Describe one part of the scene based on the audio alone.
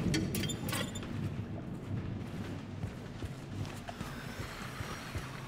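Footsteps thud slowly on a hard floor.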